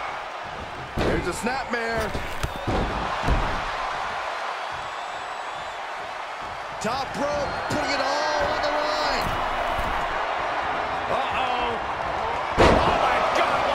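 Heavy thuds of bodies slam onto a wrestling mat.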